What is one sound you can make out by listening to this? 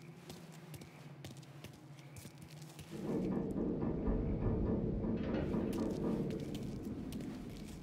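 Sparks fizz and crackle close by.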